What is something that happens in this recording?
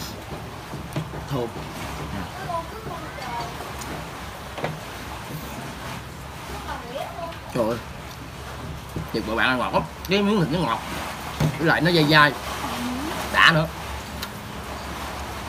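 A young man chews and slurps food noisily.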